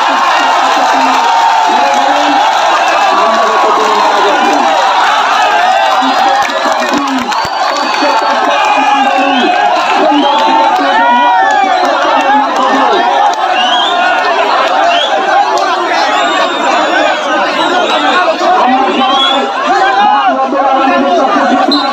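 A large outdoor crowd chatters and shouts loudly throughout.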